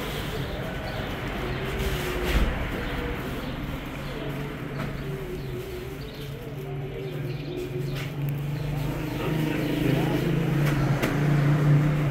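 A plastic sack rustles as it is handled.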